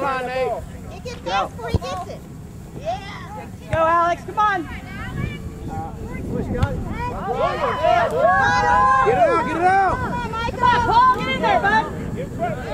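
A soccer ball is kicked with a dull thud.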